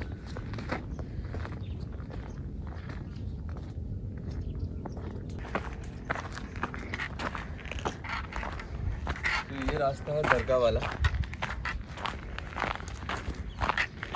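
Footsteps crunch on a dry, stony path.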